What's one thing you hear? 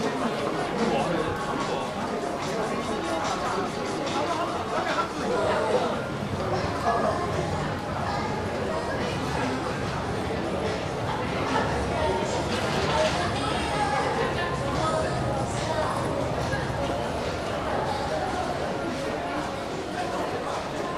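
Footsteps of many people walking echo on a hard floor.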